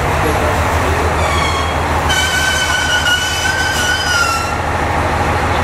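Train wheels squeal on the rails as a train slows.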